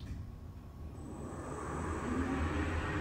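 An elevator hums as it starts to move.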